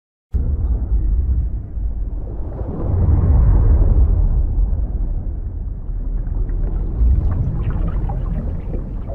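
Water churns and bubbles in a deep, muffled rush.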